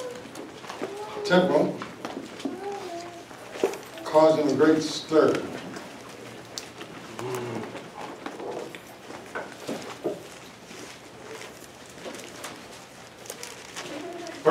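A man speaks slowly and calmly into a microphone, with long pauses.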